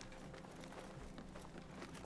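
Footsteps run across wooden planks.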